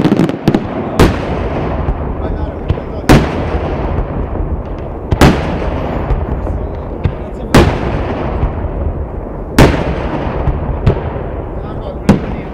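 Firework shells burst with loud, echoing bangs.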